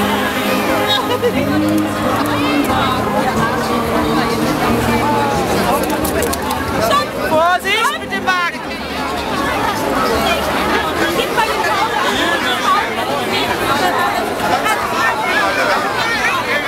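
A large crowd of adults and children chatters and calls out outdoors.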